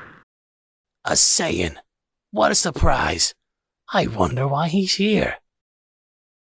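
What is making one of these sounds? A man speaks in a low, stern voice.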